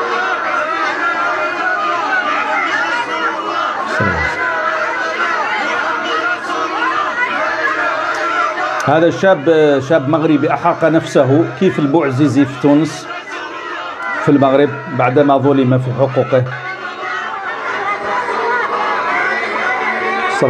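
A crowd cheers and chants, heard through a small phone speaker.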